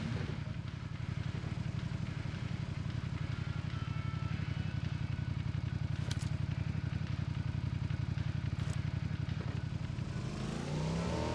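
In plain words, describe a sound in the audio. A motorcycle engine putters with a fast, even throb.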